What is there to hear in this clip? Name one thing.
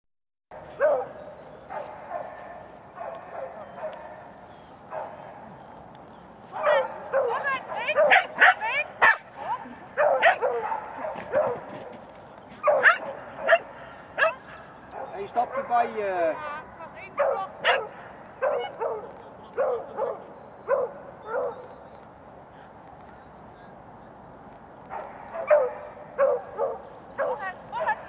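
A woman calls out short commands outdoors.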